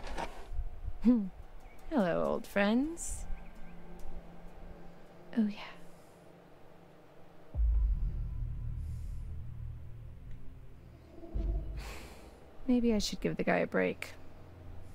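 A young woman speaks quietly and calmly, close by.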